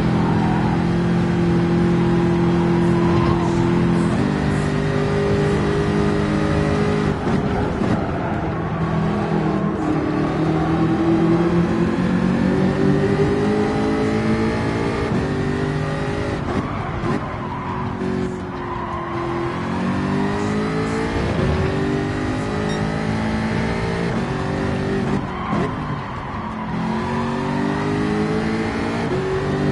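A racing car engine roars loudly, rising and falling in pitch as the gears shift.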